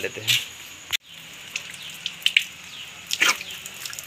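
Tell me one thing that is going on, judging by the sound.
Water trickles from a tap.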